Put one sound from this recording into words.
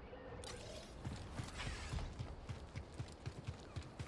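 Footsteps thud quickly on dirt as someone runs.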